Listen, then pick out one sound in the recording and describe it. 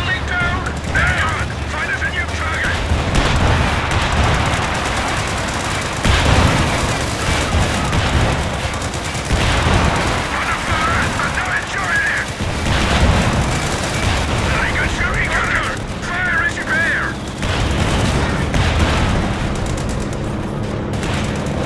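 Explosions boom and rumble throughout a battle.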